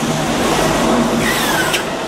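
A bus rumbles past close by.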